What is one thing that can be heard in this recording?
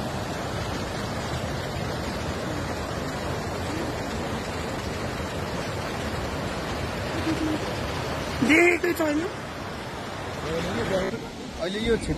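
Muddy floodwater rushes and roars loudly nearby.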